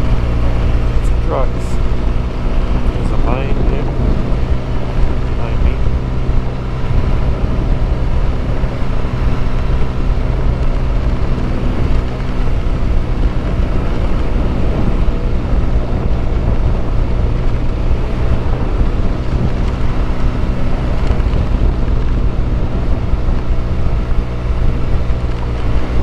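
A motorcycle engine hums steadily close by.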